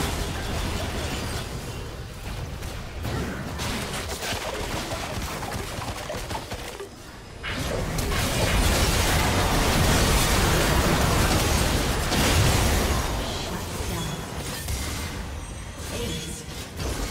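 Magic blasts and strikes crash and whoosh in a busy fight.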